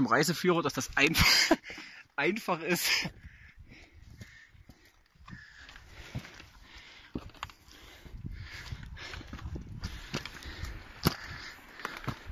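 Boots crunch on loose rock and gravel.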